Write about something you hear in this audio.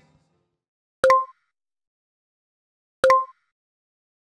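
A mouse button clicks twice.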